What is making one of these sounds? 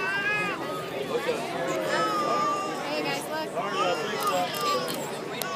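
A large outdoor crowd cheers and shouts with excitement.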